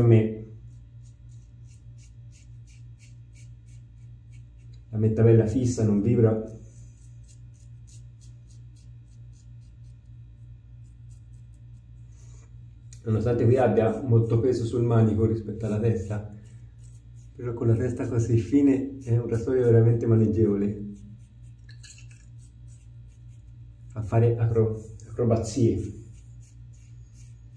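A razor scrapes through stubble in short strokes.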